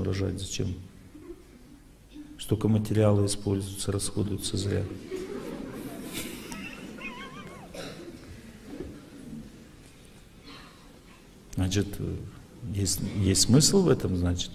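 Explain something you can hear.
A middle-aged man speaks with animation into a microphone in a large hall.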